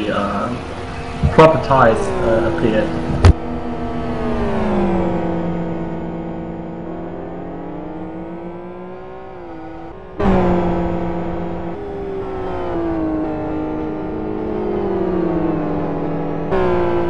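Racing car engines roar and whine as they shift through gears.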